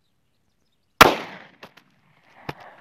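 A gunshot cracks outdoors and echoes away.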